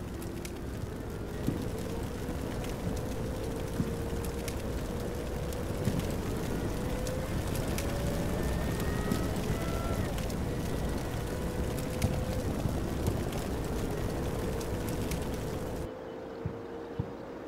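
Fires crackle and pop on burning vehicles.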